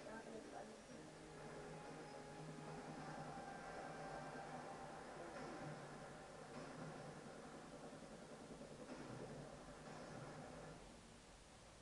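Dramatic music plays through a loudspeaker.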